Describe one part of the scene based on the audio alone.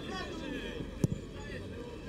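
A football is kicked on a grass pitch.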